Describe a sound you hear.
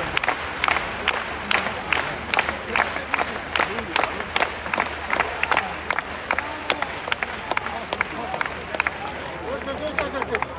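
A large stadium crowd claps in a steady rhythm.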